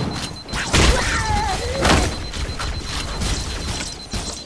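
Energy weapons fire with sharp zapping shots.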